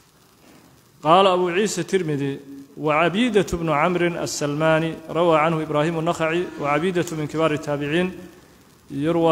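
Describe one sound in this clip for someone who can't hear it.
A man chants in a melodious voice into a close microphone.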